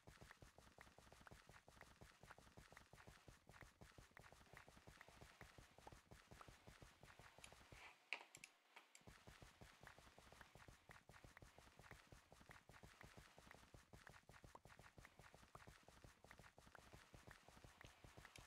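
Game blocks break in rapid succession with quick crunching clicks.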